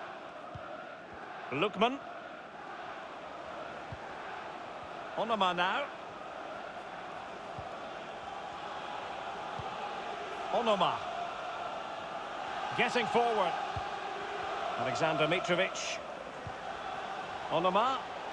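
A large stadium crowd murmurs steadily in the background.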